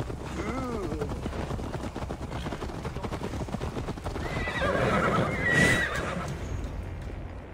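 Horse hooves clop quickly on a dirt path.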